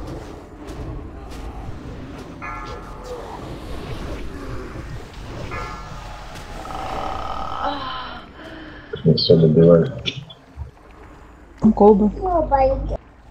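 Spells crackle and weapons clash in a busy fantasy battle.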